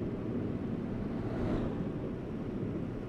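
A truck passes close by with a brief rush.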